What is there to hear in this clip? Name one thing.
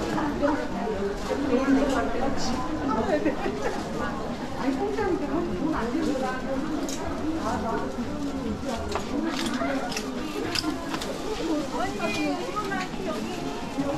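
Many voices of men and women chatter nearby in a busy indoor hall.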